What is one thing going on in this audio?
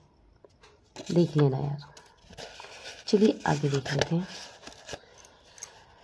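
Paper cards rustle softly as hands shuffle them.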